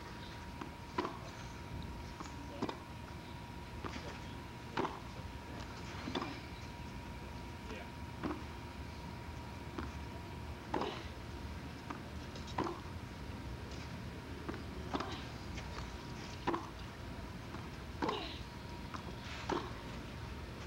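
Tennis balls are struck with rackets in a steady back-and-forth rally.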